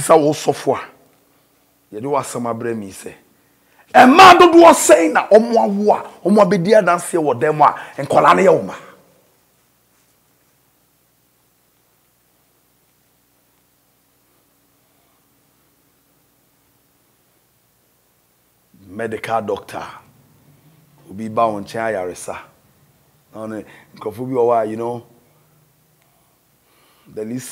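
A man speaks with animation close to a microphone, pausing at times.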